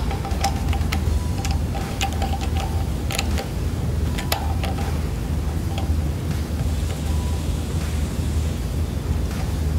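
A screwdriver clicks and scrapes against metal fittings.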